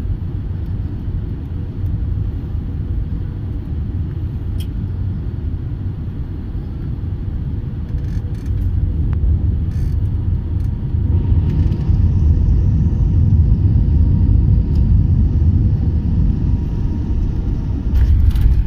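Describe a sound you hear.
Jet engines drone steadily, heard from inside an airliner cabin.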